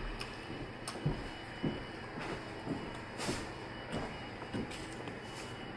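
A person chews food with soft smacking sounds.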